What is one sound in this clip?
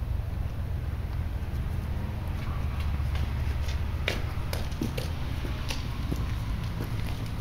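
Footsteps splash on wet pavement.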